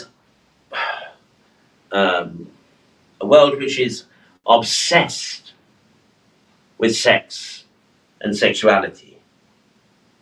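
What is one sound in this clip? A middle-aged man speaks calmly and clearly into a microphone, in short phrases with pauses.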